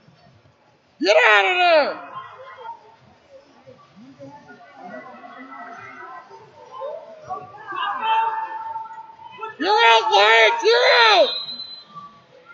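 Spectators shout encouragement loudly, echoing in a large hall.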